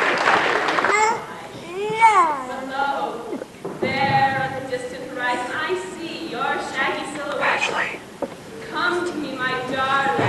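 Young adults talk and call out with animation close by.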